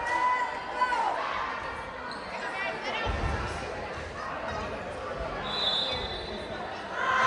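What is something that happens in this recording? Spectators murmur and chatter in a large echoing gym.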